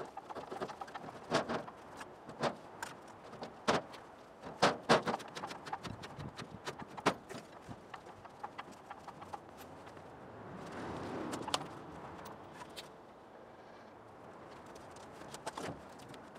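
A metal trailer frame creaks and rattles as it is lifted.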